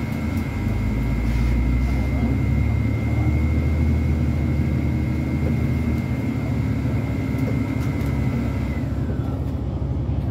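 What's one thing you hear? A high motor whine sounds steadily, then glides down and stops.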